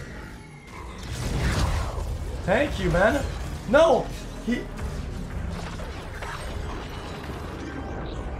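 Blasts and heavy impacts crash in a fight.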